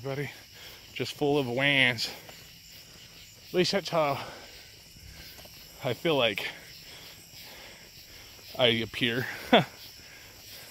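A man speaks close by in short bursts with animation.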